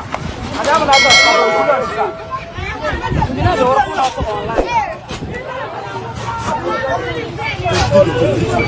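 A crowd of young men and women shout and talk excitedly outdoors, close by.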